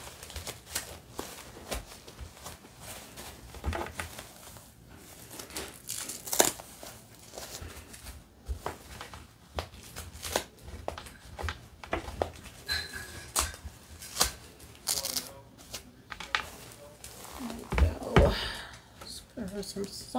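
Plastic and fabric rustle and crinkle close by.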